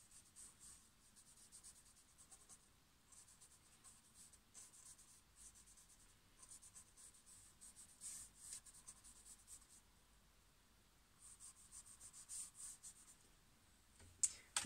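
A paintbrush brushes softly across a canvas in short strokes.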